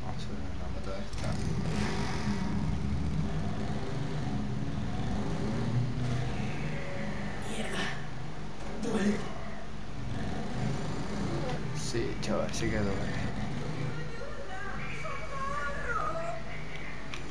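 A motorcycle engine rumbles as the bike cruises along a street.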